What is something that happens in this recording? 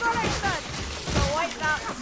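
A heavy hammer strikes a creature with a dull thud.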